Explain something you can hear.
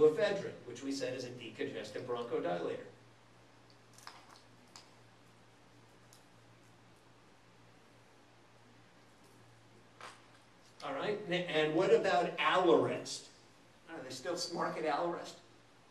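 A middle-aged man lectures calmly into a microphone.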